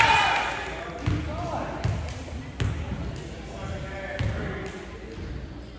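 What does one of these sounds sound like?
A basketball bounces on a hard floor, echoing in a large hall.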